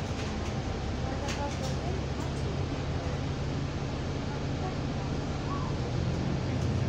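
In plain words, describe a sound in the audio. Loose fittings rattle and click inside a moving bus.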